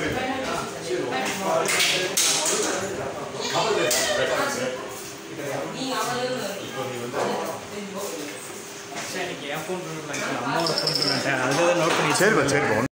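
A group of young men and women talk and call out over each other in an echoing room.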